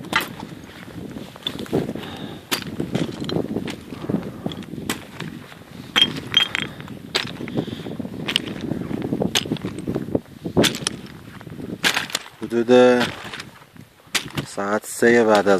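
Footsteps crunch and clatter on loose rocks.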